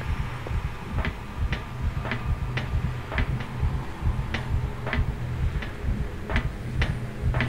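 Footsteps clank on a metal grate floor at an even pace.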